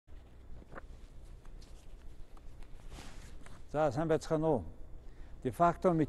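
Paper rustles in a man's hand.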